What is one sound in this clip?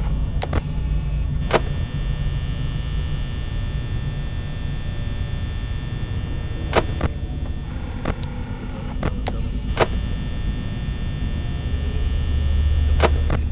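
A desk fan hums steadily.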